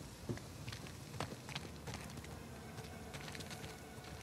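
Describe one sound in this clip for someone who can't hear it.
Footsteps scuff on a stone ledge.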